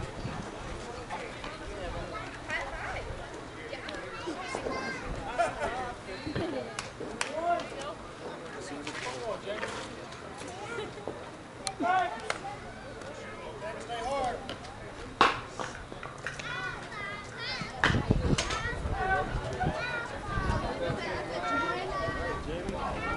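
Men talk and call out across an open field outdoors.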